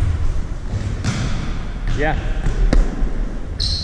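A volleyball is struck with sharp slaps that echo around a large hall.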